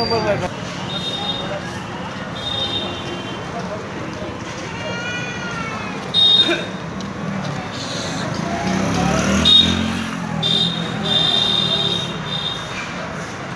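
Vehicle horns honk in short bursts.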